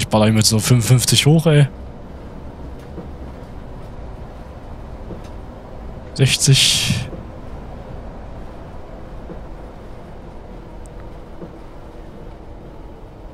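An articulated natural-gas city bus engine hums as the bus drives.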